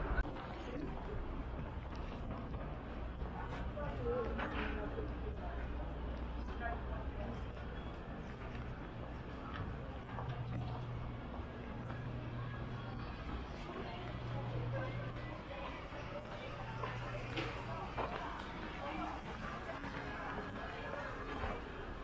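Distant voices of passers-by murmur in a city street.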